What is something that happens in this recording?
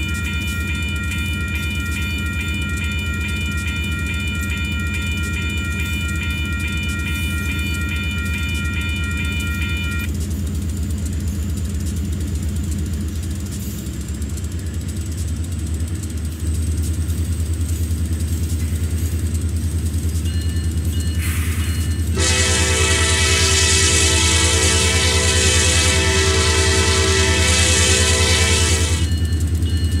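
A train's engine rumbles low and steadily.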